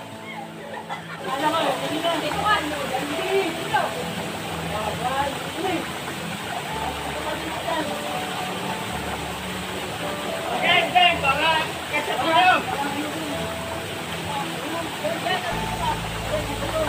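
A waterfall rushes steadily nearby.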